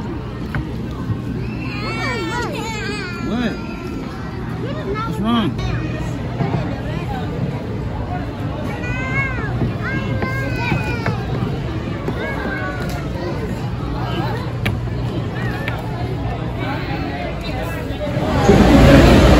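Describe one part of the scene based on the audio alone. Young children talk and squeal close by.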